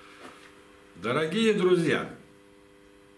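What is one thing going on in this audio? A middle-aged man speaks warmly and close by.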